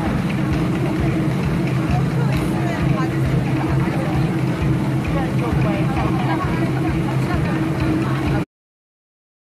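A man sings on stage.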